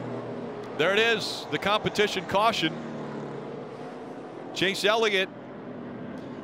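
Race car engines roar steadily as the cars speed along a track.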